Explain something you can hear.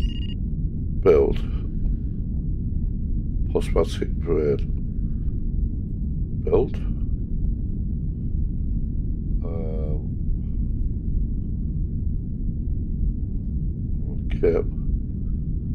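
Short electronic menu tones chime now and then.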